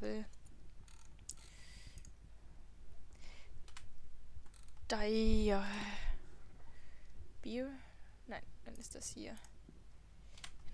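Soft interface clicks sound as items are moved between inventories.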